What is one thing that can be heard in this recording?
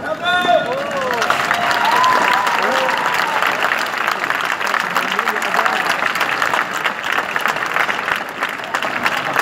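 An audience applauds loudly outdoors.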